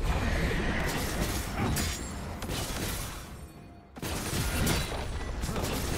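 Video game combat effects clash and zap in quick bursts.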